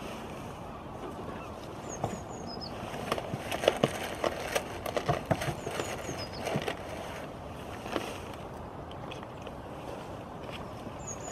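Goats chew and nibble food from a hand.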